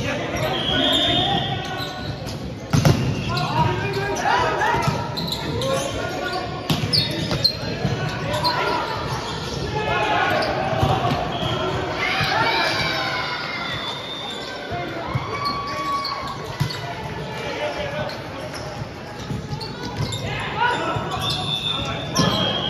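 Players shout and call out to each other in a large echoing hall.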